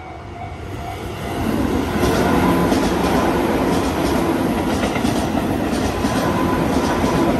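A train rumbles and clatters past close by.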